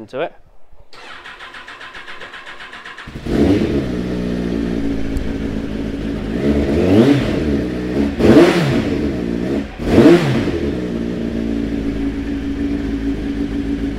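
A motorcycle engine idles with a low steady rumble.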